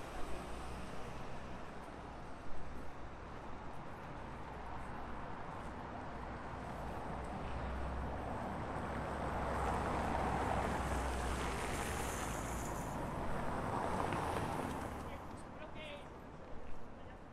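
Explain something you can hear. Outdoors, a steady murmur of city street noise carries on in light wind.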